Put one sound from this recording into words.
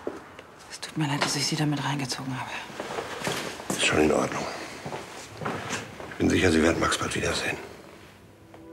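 An elderly man speaks quietly, close by.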